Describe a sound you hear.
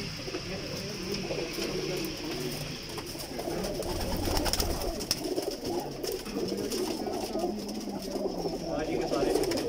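Pigeons coo in a low, rumbling chorus close by.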